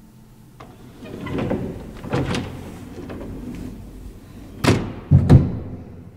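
A metal gate latch clicks and rattles.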